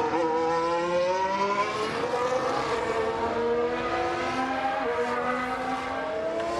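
Racing car engines whine at high revs, rising and falling as the cars pass.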